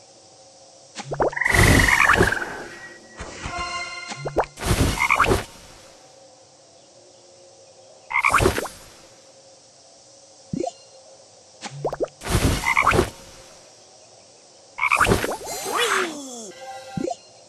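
Game bubbles pop and burst in bursts of bright sound effects.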